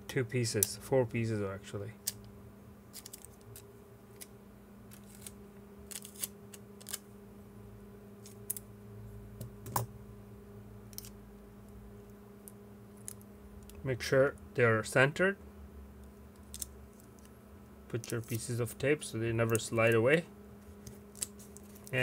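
Small plastic parts click and tap softly under fingers.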